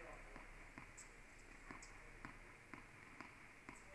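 A tennis ball bounces on a hard court floor.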